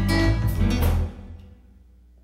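A loud musical sting plays.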